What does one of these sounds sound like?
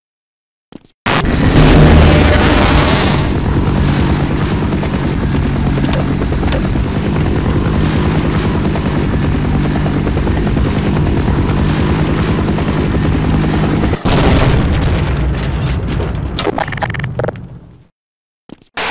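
Aircraft rotors drone loudly and steadily.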